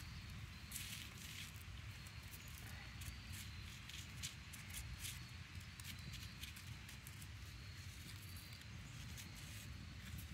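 Fingers crunch and rub gritty charcoal in a stone bowl.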